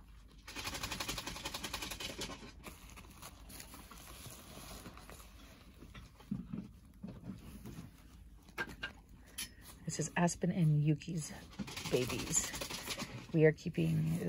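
Fingers rustle softly against a crinkly paper pad.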